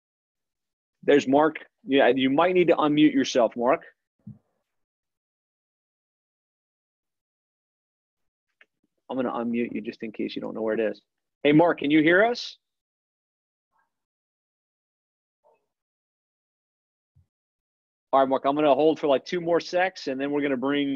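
A man talks calmly into a microphone over an online call, with pauses between phrases.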